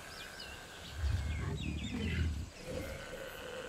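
A large creature grunts and groans nearby.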